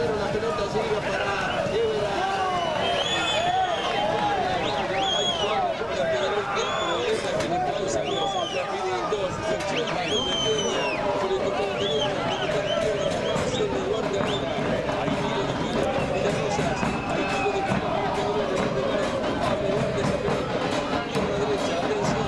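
A large crowd of spectators shouts and cheers outdoors.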